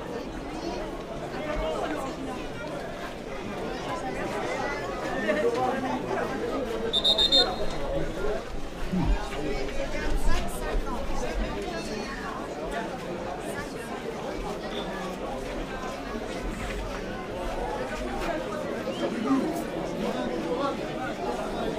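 A crowd of spectators chatters steadily outdoors.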